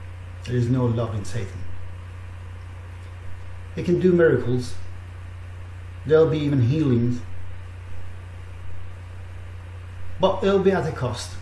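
A middle-aged man speaks slowly and calmly into a close microphone, with pauses between phrases.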